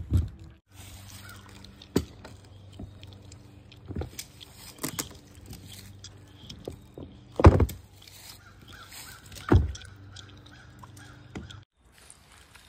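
Wooden boards knock and clatter as they are pried loose.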